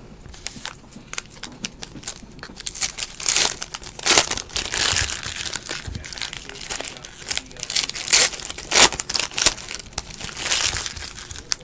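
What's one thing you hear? A foil card pack crinkles and tears as hands open it.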